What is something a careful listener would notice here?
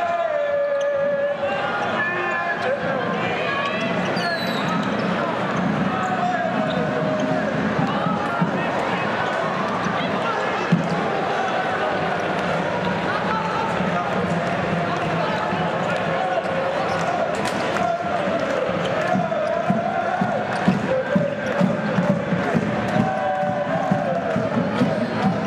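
A large indoor crowd cheers and chants steadily in an echoing arena.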